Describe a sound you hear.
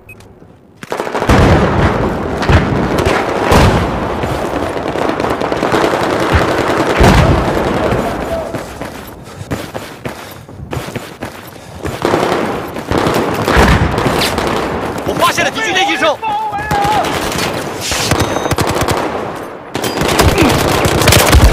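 Rapid gunfire rattles and booms with echoes.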